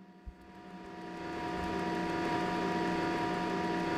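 Machines hum steadily, growing louder.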